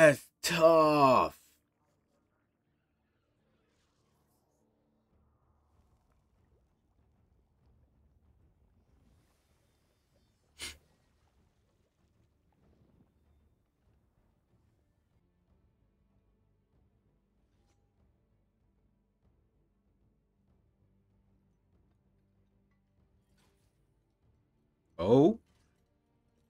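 A young man exclaims loudly, close to a microphone.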